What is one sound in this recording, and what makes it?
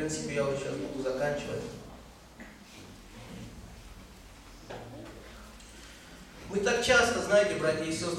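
A middle-aged man speaks into a microphone over a loudspeaker in an echoing hall, pausing between phrases.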